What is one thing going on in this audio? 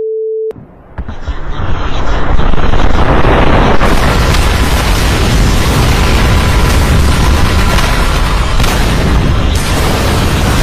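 Loud explosions and roaring battle noise play from a television.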